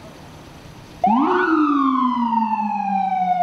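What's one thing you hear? A police siren wails nearby, sweeping up and down.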